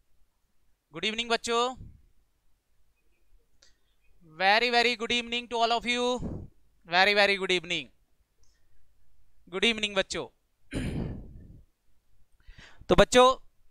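A young man speaks with animation into a close headset microphone.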